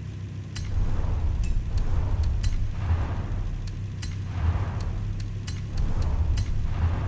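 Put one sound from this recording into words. Buttons click sharply again and again.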